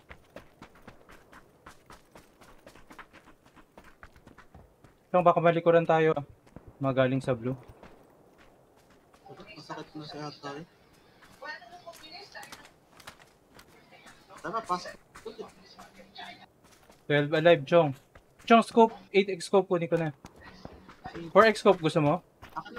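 Footsteps crunch quickly over grass and gravel.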